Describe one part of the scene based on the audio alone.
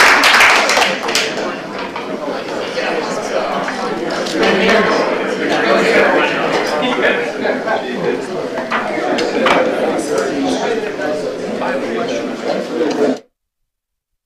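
Many men and women chatter at once as a crowd mills about.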